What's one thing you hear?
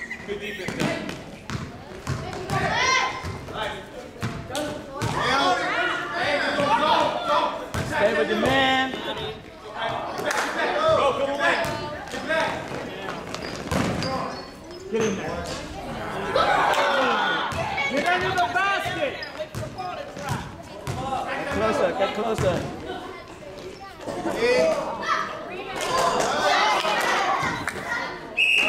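Children and adults shout and cheer from the sidelines.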